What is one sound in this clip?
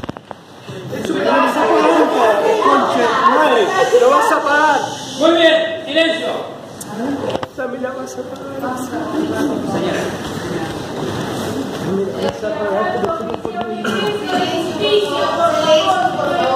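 A crowd murmurs and calls out in an echoing hall.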